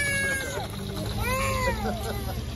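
A young child calls out nearby.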